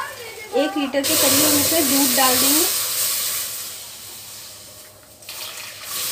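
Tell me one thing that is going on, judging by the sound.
Milk pours and splashes into a metal pan.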